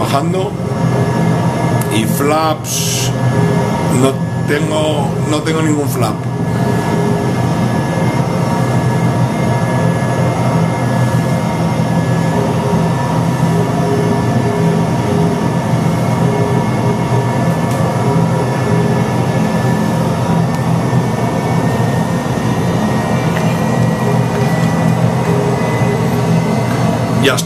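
Jet engines drone steadily through a loudspeaker.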